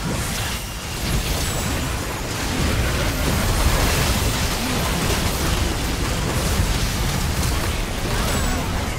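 Magic spells burst and crackle in a hectic game battle.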